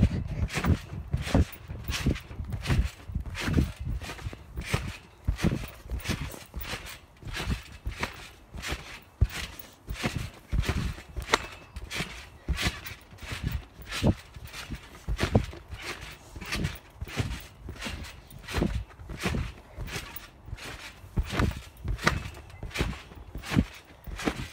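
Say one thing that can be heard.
Trampoline springs squeak with each bounce.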